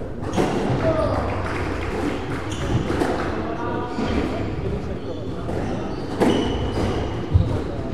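Footsteps patter quickly across a wooden floor.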